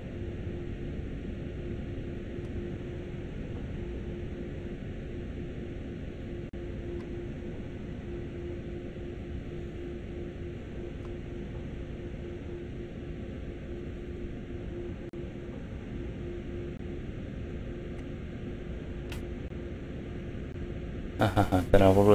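An electric train motor hums steadily.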